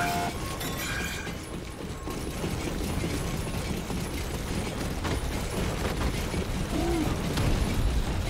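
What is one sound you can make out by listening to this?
Quick footsteps run across a hard metal floor.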